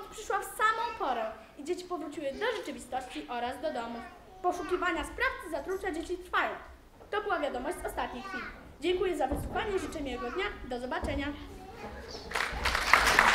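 A young girl speaks calmly into a microphone in a large hall.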